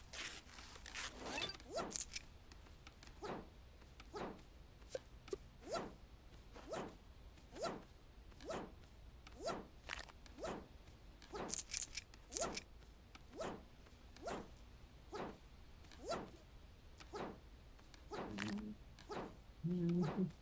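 Short whooshing sounds repeat at a steady pace.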